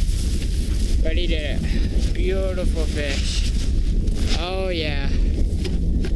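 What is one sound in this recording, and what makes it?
A young man speaks with animation close to the microphone.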